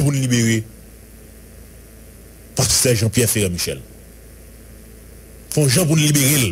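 A man speaks into a microphone in short bursts with pauses between them.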